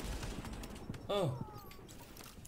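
A loud explosion bursts.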